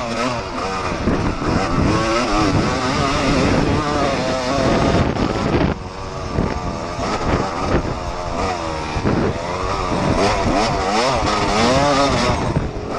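A dirt bike engine revs up and down loudly and close by.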